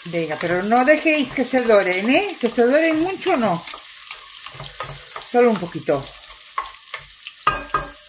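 A wooden spatula scrapes and stirs in a pot.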